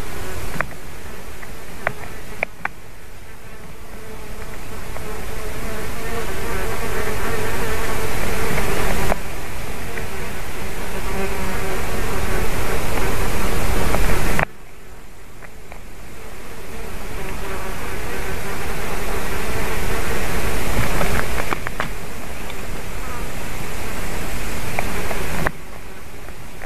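Wind rushes through the treetops in gusts.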